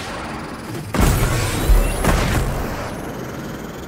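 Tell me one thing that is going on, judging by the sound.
A loud blast booms.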